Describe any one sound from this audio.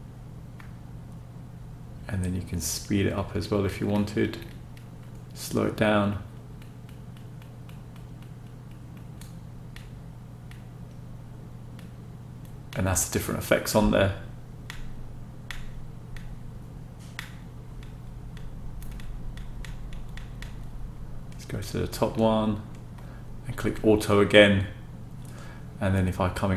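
Buttons on a small remote control click softly.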